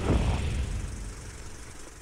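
A film projector whirs and clatters.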